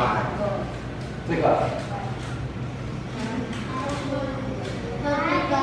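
Young children chatter and call out in an echoing room.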